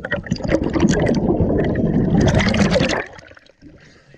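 Bubbles rush and gurgle loudly underwater.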